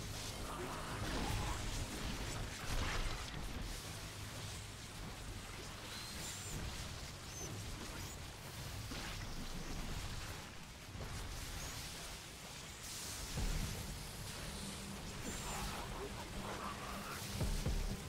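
Creatures screech and clash in a noisy battle.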